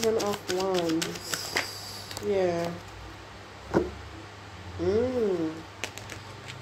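Paper banknotes flick and rustle as they are counted.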